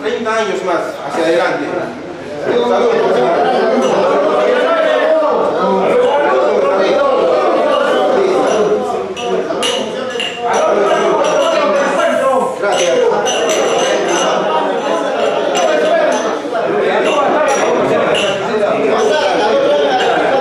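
A group of men talk and cheer loudly together in a room.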